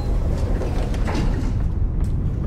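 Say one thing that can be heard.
A metal elevator gate rattles open.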